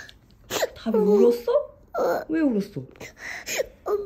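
A woman speaks softly and gently close by.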